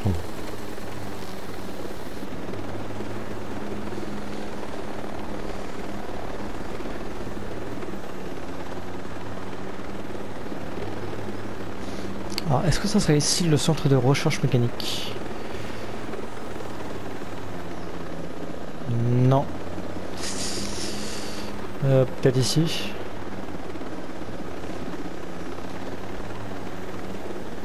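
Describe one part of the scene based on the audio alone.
A helicopter's rotor and engine thrum steadily in flight.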